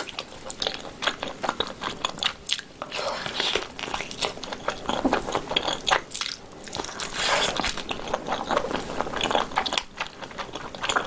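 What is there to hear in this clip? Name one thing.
A young woman chews and slurps food noisily close to a microphone.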